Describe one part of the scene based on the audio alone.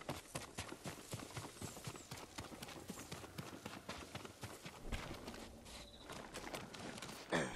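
Footsteps crunch quickly over grass and rock.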